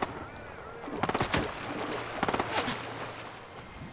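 Water splashes as a character swims.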